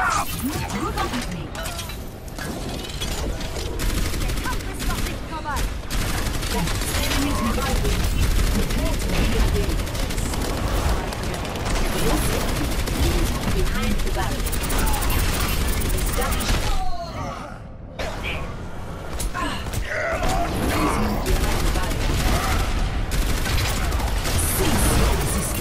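A video game energy cannon fires in rapid bursts.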